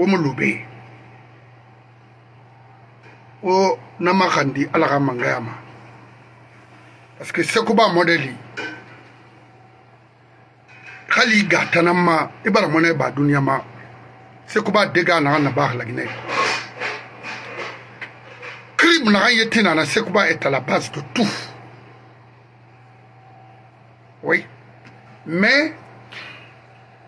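A middle-aged man speaks with animation close to a microphone, in bursts with pauses.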